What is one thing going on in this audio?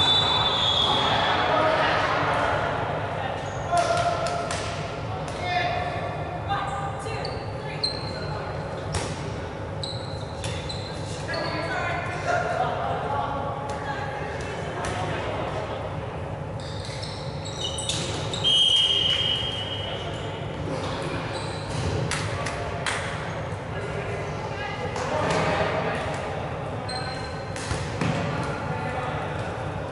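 Shoes squeak sharply on the hall floor.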